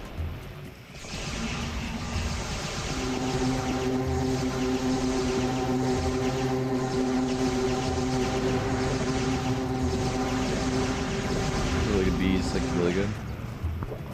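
Energy blasts crackle and whoosh in quick bursts.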